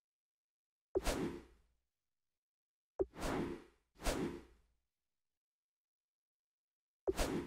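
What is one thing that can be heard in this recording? Short menu whooshes sound a few times.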